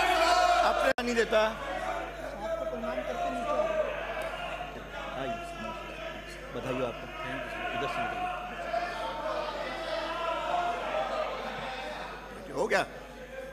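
An older man speaks firmly through a microphone.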